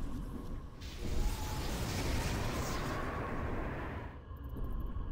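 A spell explodes with a whooshing burst.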